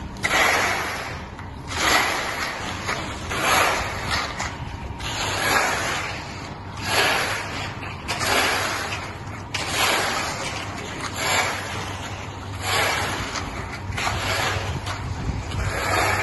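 Rakes and screeds scrape and swish through wet gravelly concrete.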